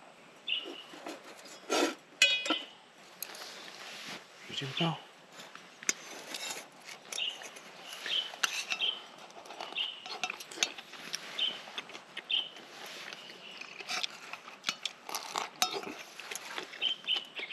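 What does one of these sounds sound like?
Metal tongs clink against a pan.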